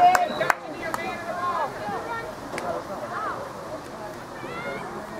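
Young women shout and call out to each other across an open playing field.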